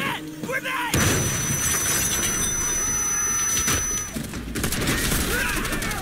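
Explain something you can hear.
A grenade explodes with a loud blast and rumbling debris.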